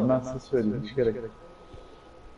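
A young man talks casually into a microphone, close by.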